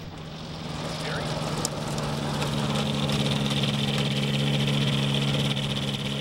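Tyres roll over dry dirt.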